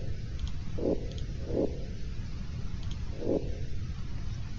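Soft game menu blips sound as choices change.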